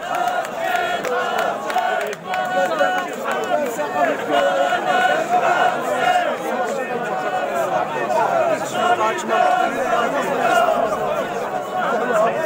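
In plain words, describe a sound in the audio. A large crowd of men chants loudly and rhythmically outdoors.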